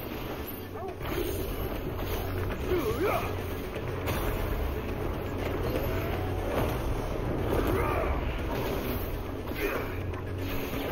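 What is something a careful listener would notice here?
Flames roar and burst in a blast of fire.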